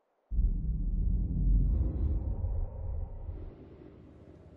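Wind roars in a low, steady rush, then fades.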